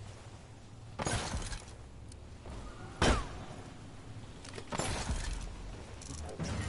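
A gun fires in short, loud bursts.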